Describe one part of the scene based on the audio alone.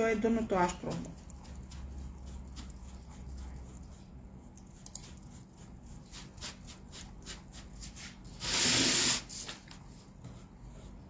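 A metal tool taps and scrapes on a board in short, quick strokes.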